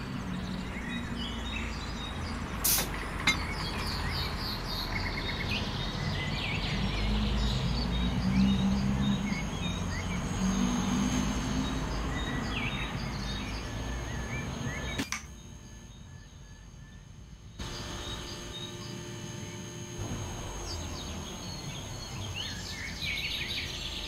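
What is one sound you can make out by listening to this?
A long freight train rumbles over rails.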